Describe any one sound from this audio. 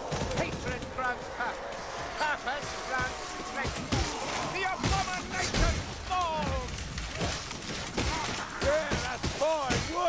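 Blades hack and thud in a melee fight.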